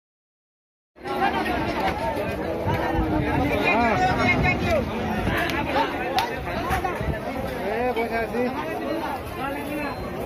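A large crowd of men talk and call out all around, outdoors.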